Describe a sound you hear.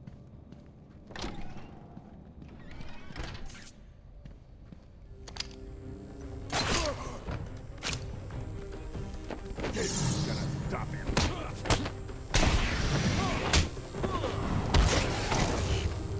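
Punches and blows thud in a game fight.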